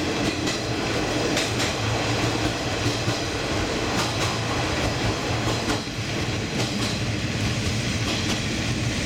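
A train rumbles steadily along the track.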